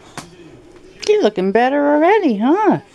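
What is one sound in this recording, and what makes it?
A dog whines and howls loudly up close.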